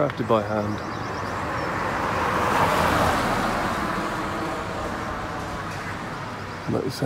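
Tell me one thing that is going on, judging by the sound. A car passes close by and fades away.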